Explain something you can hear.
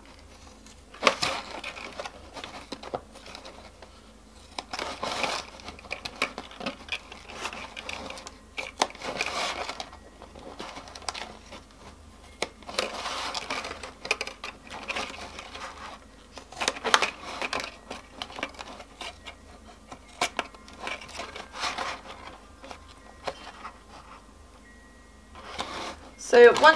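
Scissors snip through thin plastic in short bursts.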